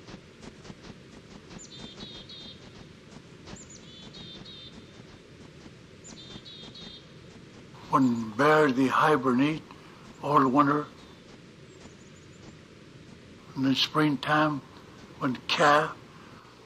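A bear's paws crunch softly on snow.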